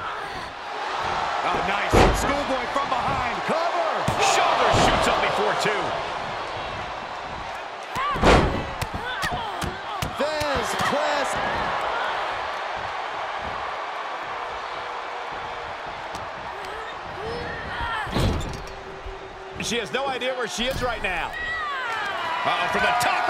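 A crowd roars and cheers in a large arena.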